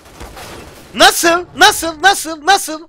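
A young man shouts with excitement into a microphone.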